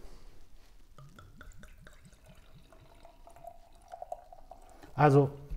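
Beer glugs and splashes as it is poured from a bottle into a glass.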